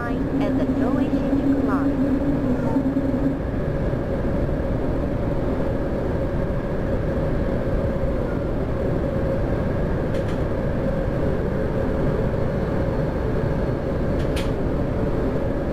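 A train's electric motor hums with a steady whine.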